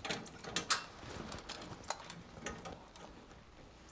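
Objects clatter against metal inside a cabinet.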